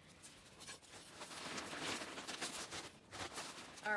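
Potting soil pours from a bag into a pot.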